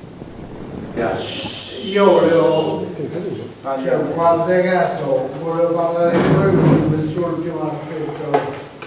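An elderly man speaks with animation in a room.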